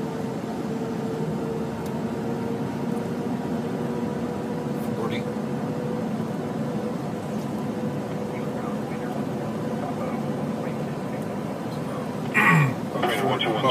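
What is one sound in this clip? Car tyres roll on pavement.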